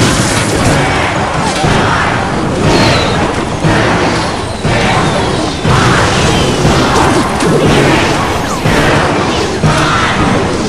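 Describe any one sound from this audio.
Video game battle effects clash and burst.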